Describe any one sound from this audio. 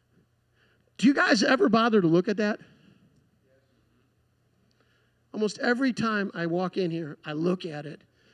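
A man speaks into a microphone, heard through loudspeakers in a large room.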